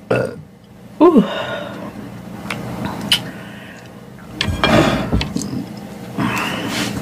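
A woman speaks softly close to a microphone.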